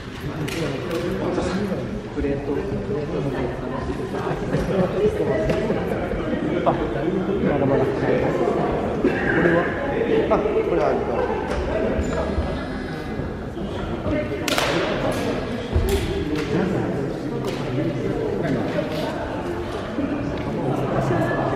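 Several men talk nearby in a large echoing hall.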